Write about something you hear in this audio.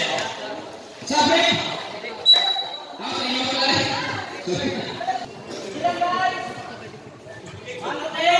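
A crowd of young people chatters and shouts.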